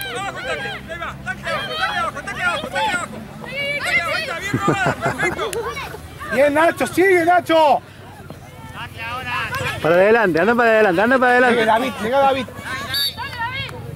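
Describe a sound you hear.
Young boys shout and call out excitedly outdoors.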